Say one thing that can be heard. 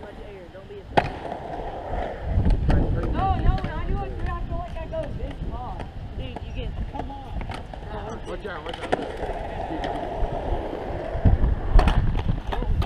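A skateboard clacks sharply against concrete.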